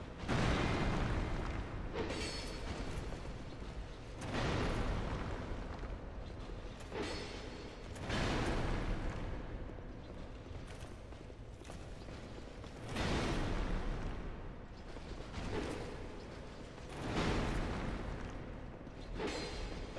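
Heavy sword blows swoosh and clash in bursts.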